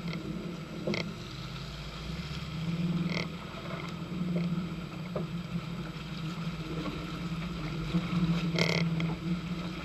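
Mud and stones knock against the vehicle's underside.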